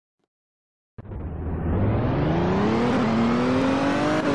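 A car engine revs up and speeds along.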